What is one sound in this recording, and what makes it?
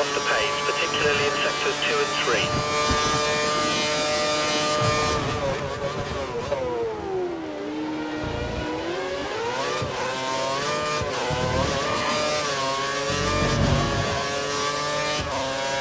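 A racing car engine screams at high pitch, dropping as it slows for a corner and rising again as it speeds up.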